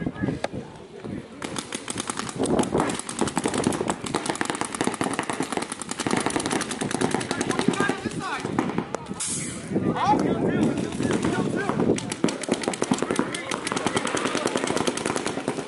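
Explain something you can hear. Paintball markers fire in rapid popping bursts.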